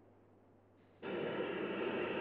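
A steam locomotive hisses and chugs.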